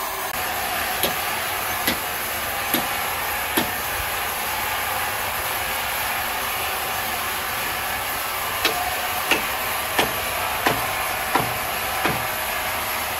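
A hammer taps sharply on wood, several times.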